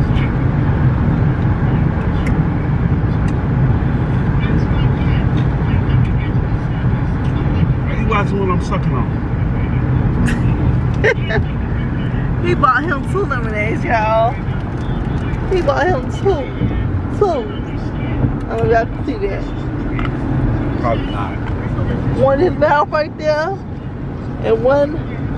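A car's engine and road noise rumble steadily from inside the car.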